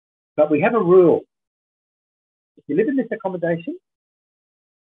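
A middle-aged man speaks close through an online call.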